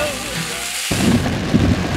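Water jets of a fountain splash steadily.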